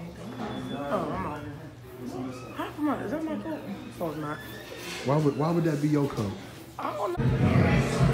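A boy talks close by, muffled by a mask.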